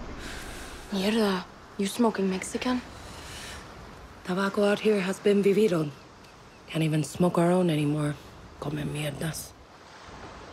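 Two young women talk quietly and tensely.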